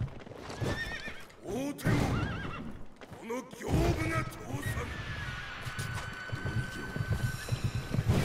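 A horse gallops with heavy thudding hooves.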